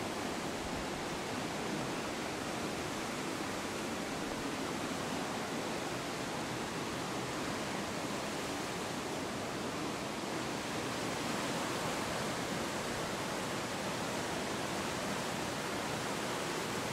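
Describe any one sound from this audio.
Water rushes and churns through a stone channel.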